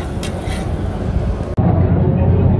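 Food sizzles in a hot wok as a ladle scrapes it in.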